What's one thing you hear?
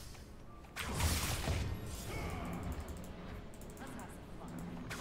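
Video game blades swing and hit in a fight.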